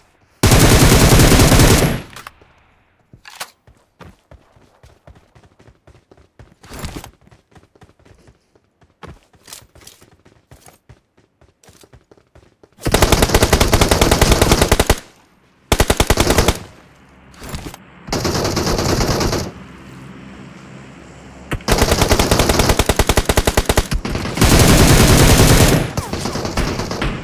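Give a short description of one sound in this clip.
An automatic assault rifle fires in rapid bursts.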